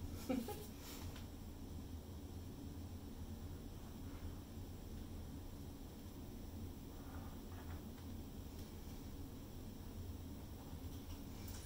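A plastic paint bottle is handled and squeezed.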